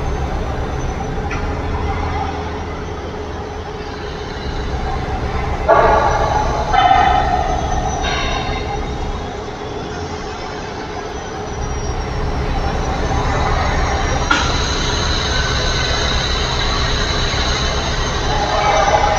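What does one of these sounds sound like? A truck drives along a road with a steady rush of tyres and wind.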